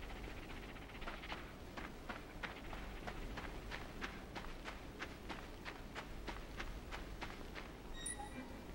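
Small footsteps patter quickly over soft ground.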